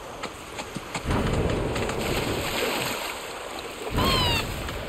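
Water splashes as a large bird runs through a shallow stream.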